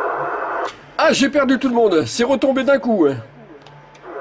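A man talks with animation over a crackly radio loudspeaker.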